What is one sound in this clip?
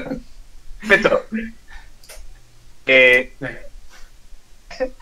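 A man laughs loudly over an online call.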